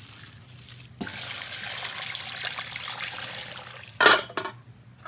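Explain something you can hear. Water pours into a metal pot.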